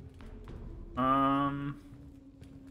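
A young man speaks briefly close to a microphone.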